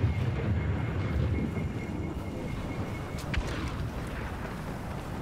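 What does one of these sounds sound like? Wind blows steadily through falling snow.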